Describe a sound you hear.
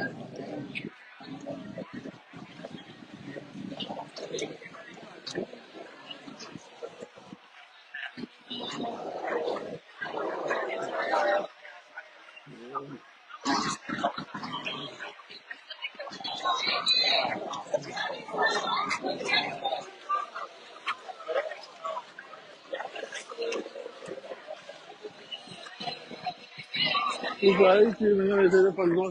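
A crowd of men, women and children chatters nearby, outdoors.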